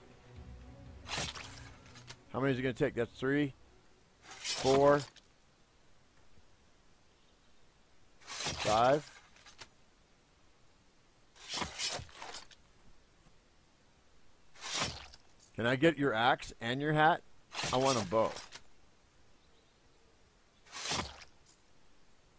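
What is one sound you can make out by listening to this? A bowstring twangs as an arrow is shot with a swift whoosh.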